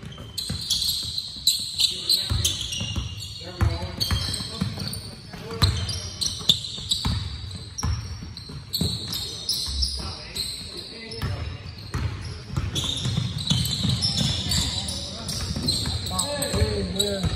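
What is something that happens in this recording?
Basketballs bounce on a wooden floor in a large echoing gym.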